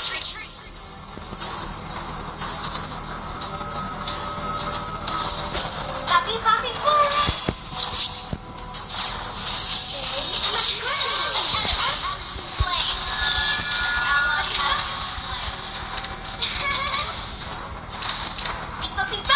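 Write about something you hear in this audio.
Game sound effects of clashing attacks and spells play loudly.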